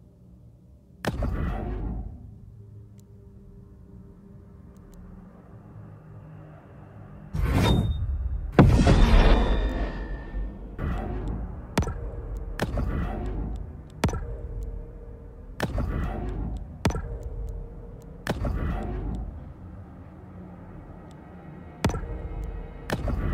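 Game menu selections click sharply, each followed by a soft whoosh.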